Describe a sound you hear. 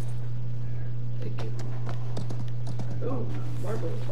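A horse gallops with thudding hooves.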